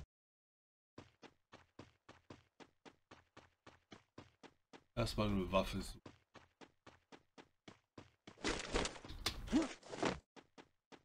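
Quick footsteps run across the ground.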